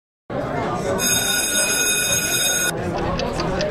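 A digital clock alarm rings with a steady high tone.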